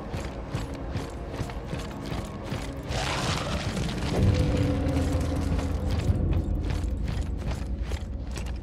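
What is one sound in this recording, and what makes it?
Armour and gear rattle and clank with each step.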